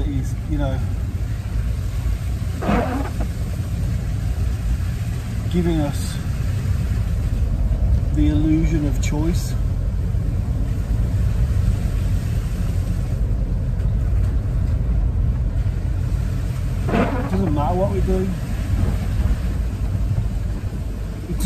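A vehicle's engine rumbles low and steadily.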